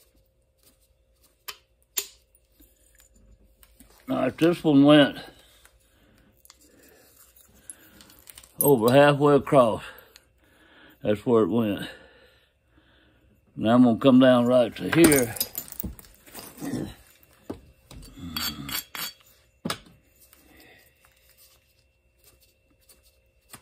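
A small hammer taps sharply on a metal punch.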